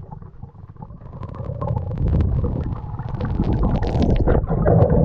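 Air bubbles burble and crackle close by.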